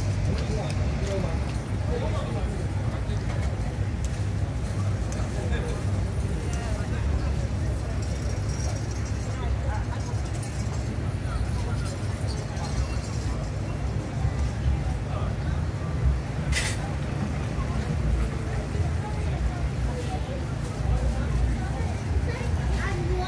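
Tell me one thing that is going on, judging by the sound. Men talk in a crowd nearby.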